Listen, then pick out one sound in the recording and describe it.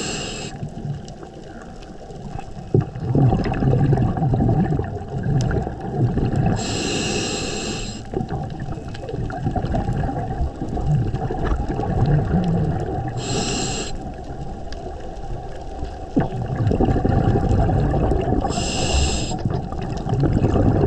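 Water swirls and rumbles low and steadily underwater.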